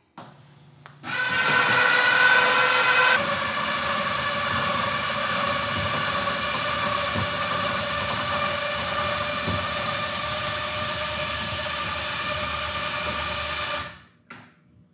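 An electric motor hums steadily, then stops.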